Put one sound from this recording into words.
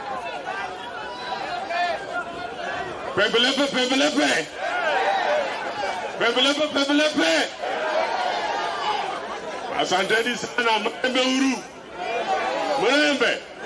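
A middle-aged man speaks loudly and with passion into a microphone, heard outdoors.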